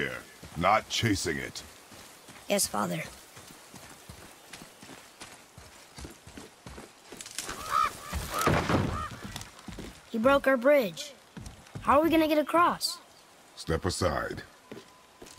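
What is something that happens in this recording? Heavy footsteps crunch on snow and thud on wooden planks.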